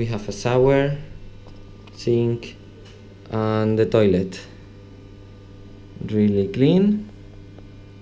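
A man speaks close by in short bursts, in a small echoing room.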